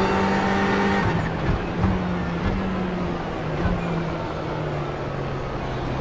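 A race car engine drops in pitch as the car slows for a corner.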